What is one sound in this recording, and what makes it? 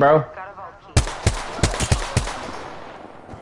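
Rapid gunshots crack in a quick burst.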